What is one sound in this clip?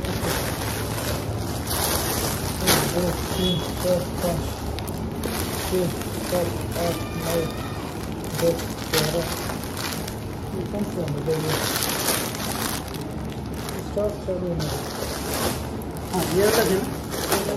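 Plastic wrapping crinkles and rustles as packs of cloth are handled.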